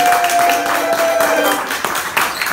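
A banjo rings out with a held chord.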